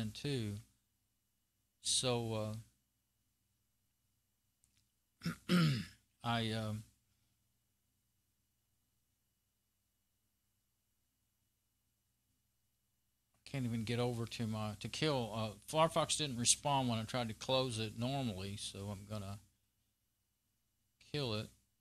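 A man speaks calmly and close up, in short bursts with pauses.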